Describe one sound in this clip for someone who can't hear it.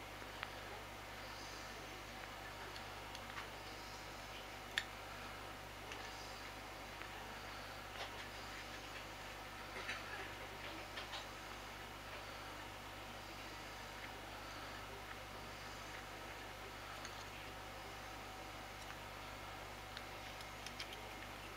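Small clicks and taps of fingers handling thread and a metal tool.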